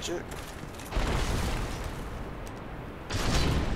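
A heavy blow lands with a dull crash.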